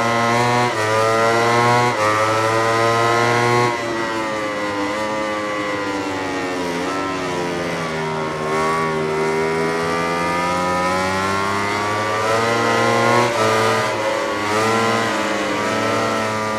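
A racing motorcycle engine screams at high revs, shifting gears and dropping in pitch through a bend before revving up again.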